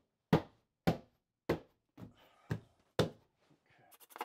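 Hands thump against a wall panel.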